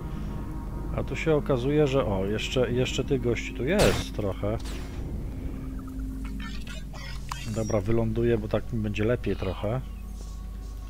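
A man talks with animation into a headset microphone.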